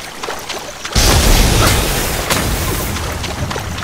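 Lightning cracks sharply.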